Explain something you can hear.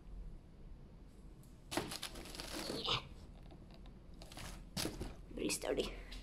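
Stiff woven bark rustles softly under a hand.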